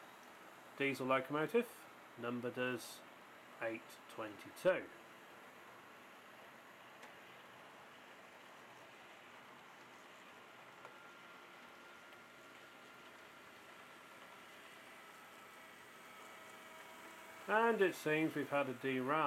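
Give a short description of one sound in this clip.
A model train horn blows in loud bursts.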